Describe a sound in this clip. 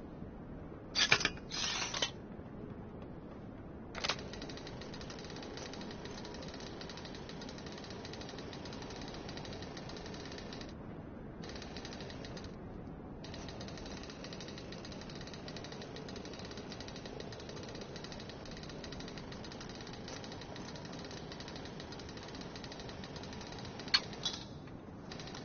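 A metal lock pick scrapes and clicks inside a door lock.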